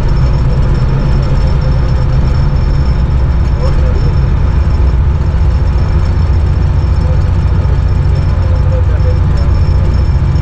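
Train wheels rattle over the rails.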